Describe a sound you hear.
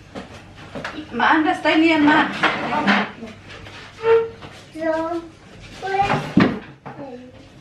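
A boy talks with animation nearby.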